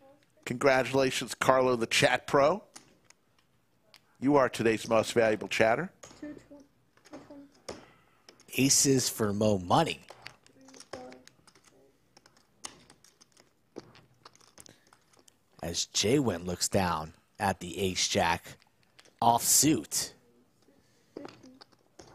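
Poker chips click and clatter together on a table.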